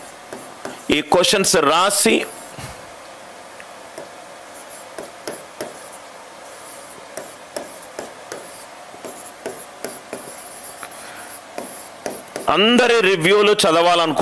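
A marker squeaks and taps on a board as it writes.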